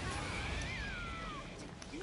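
A wave of water crashes and rushes.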